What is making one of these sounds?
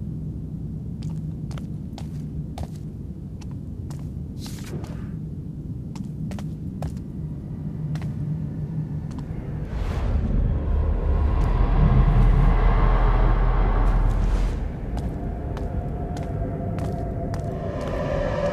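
Slow footsteps tap on a hard floor.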